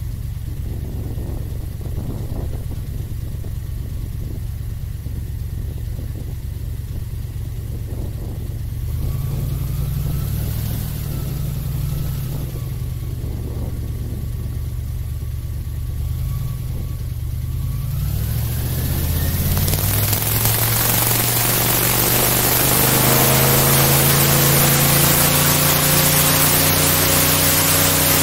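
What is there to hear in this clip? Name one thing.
An airboat engine drones loudly with a deep, steady roar.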